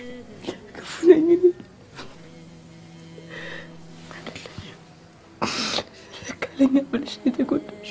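A young woman sobs and speaks tearfully up close.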